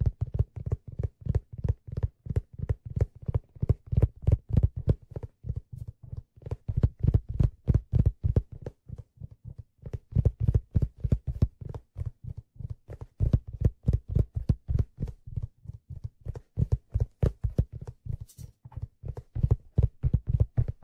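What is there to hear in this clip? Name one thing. A hand drum is struck in a quick, steady rhythm of deep, dull thumps close by.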